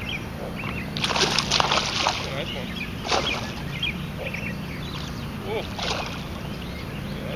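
A fishing reel whirs as line is cast and reeled in.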